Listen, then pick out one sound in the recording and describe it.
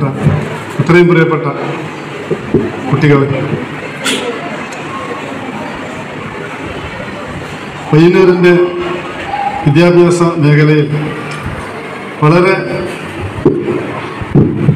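A man speaks through a microphone and loudspeakers in a room with some echo.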